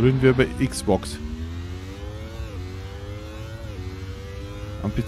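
A race car engine whines, rising steadily in pitch and dropping briefly with each gear change.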